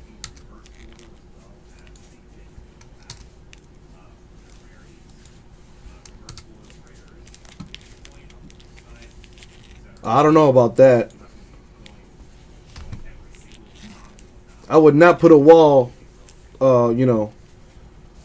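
A plastic card wrapper crinkles and rustles in hands.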